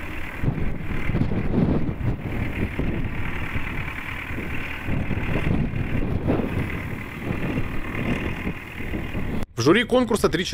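A tractor engine rumbles steadily as the tractor drives slowly.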